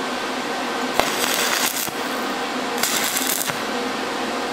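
An electric welding arc crackles and sizzles in short bursts.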